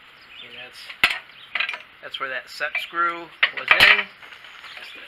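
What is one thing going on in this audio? A wrench clanks and clicks against metal.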